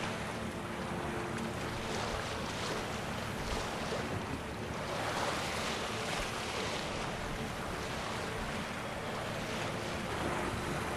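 Stormy wind howls steadily outdoors.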